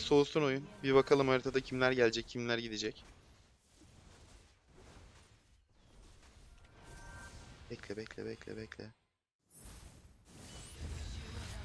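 Fantasy spell effects whoosh and burst in a fight.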